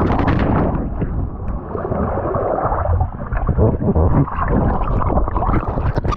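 Water churns and bubbles underwater.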